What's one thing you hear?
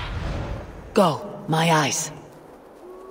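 A raven caws harshly.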